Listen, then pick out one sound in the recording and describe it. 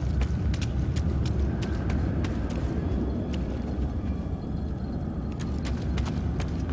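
Footsteps tread on a wet stone floor.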